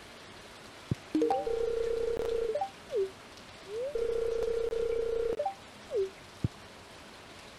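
A steady electronic tone hums with short rising and falling chirps.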